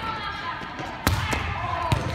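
A volleyball is slapped hard.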